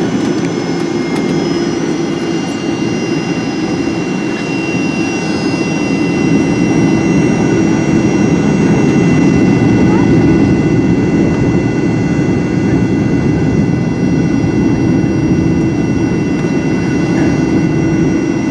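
Jet engines roar and whine steadily from inside an aircraft cabin.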